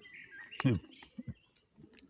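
Hands tear apart roast chicken with soft crackling.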